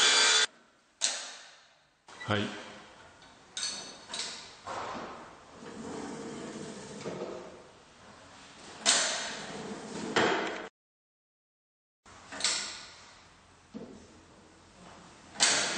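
A mitre saw's head clunks and clicks as it is moved.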